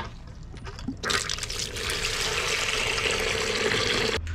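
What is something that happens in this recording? Water gushes from a hose and splashes into a plastic bucket.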